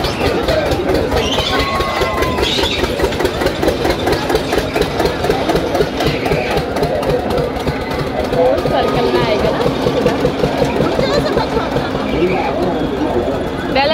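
A large crowd chatters and shouts outdoors.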